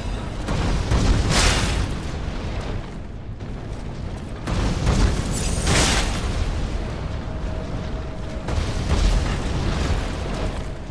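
A fiery blast roars and crackles with sparks.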